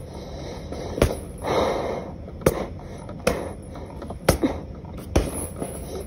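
Punches thump against a heavy punching bag.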